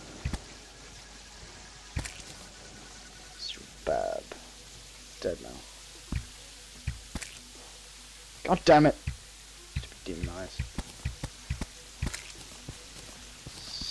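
A bow twangs as arrows are shot in quick bursts.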